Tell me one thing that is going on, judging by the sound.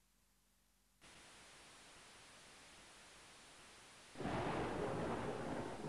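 Rain pours down steadily and grows heavier.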